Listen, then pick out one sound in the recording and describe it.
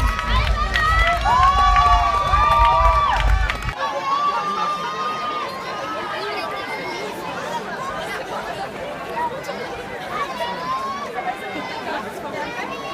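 A crowd of women cheers and shouts outdoors.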